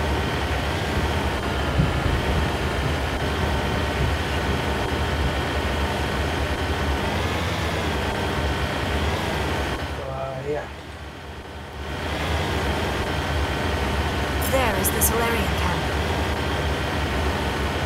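A vehicle engine drones steadily.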